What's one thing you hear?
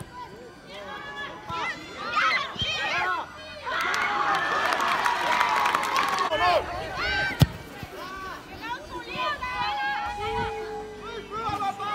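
Children shout and call out.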